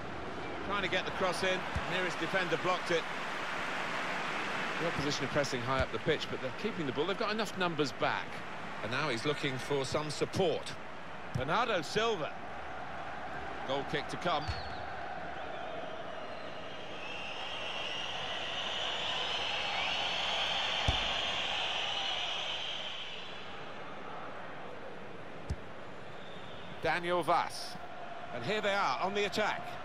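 A stadium crowd roars and swells.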